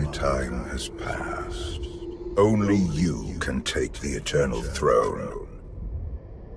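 An elderly man speaks calmly and gravely, his voice slightly processed.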